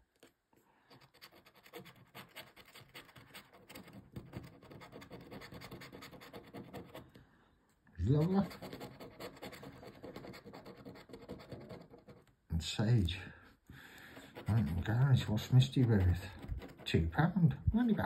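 A plastic scratcher scrapes rapidly across a scratch card.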